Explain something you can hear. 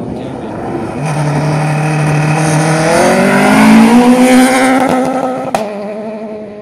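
A second rally car approaches at full throttle on gravel and races past.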